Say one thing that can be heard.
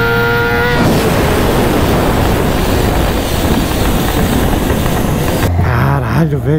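Wind roars past a motorcycle at very high speed.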